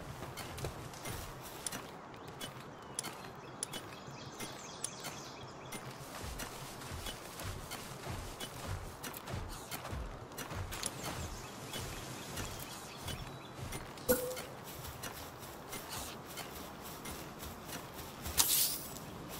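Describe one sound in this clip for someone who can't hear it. Footsteps patter on grass.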